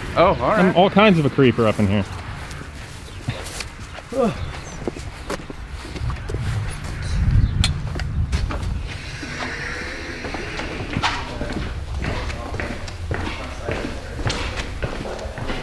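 Footsteps walk along steadily.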